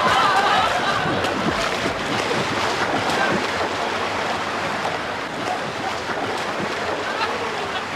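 Water splashes in an echoing indoor pool.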